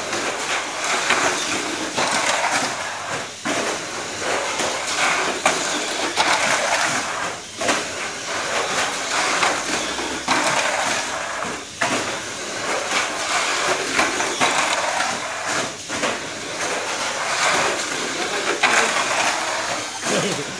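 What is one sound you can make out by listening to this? Small electric toy cars whine and whir as they race around a plastic track, surging loudly each time they pass close by.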